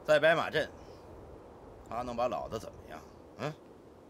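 A man speaks forcefully up close.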